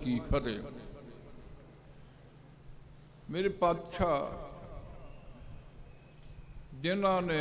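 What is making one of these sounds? An elderly man speaks slowly and solemnly into a microphone, with echo.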